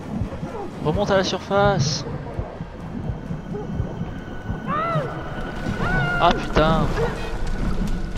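A young woman cries out and gasps with effort.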